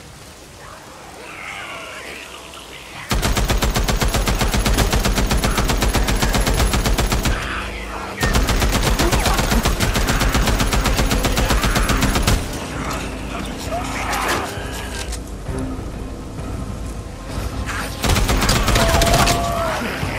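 Creatures snarl and shriek nearby.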